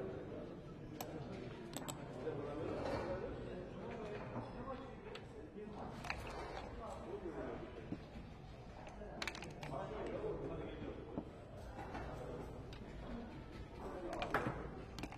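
Backgammon checkers click and clack as they are moved on a board.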